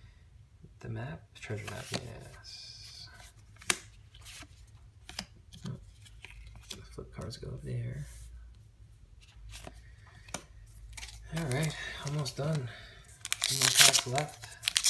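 Playing cards rustle and flick as hands sort through them.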